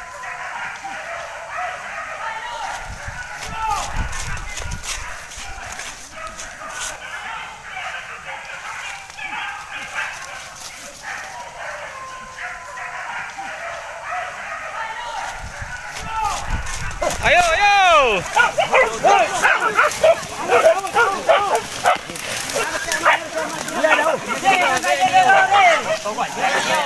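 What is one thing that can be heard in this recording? Men talk and shout excitedly nearby.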